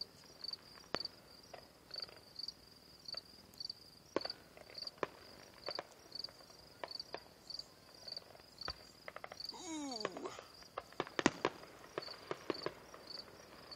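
Fireworks pop and crackle in the distance.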